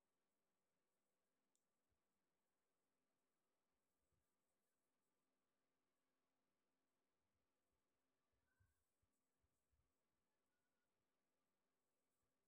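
Hands softly pat and shape soft dough.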